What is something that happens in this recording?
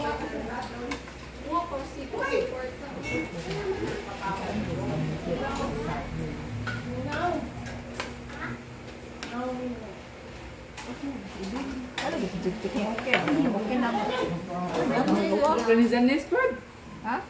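Several adults chat nearby in a room.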